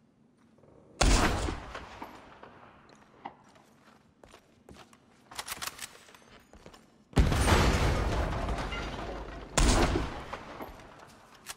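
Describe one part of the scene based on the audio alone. A rifle fires loud shots that boom and echo away.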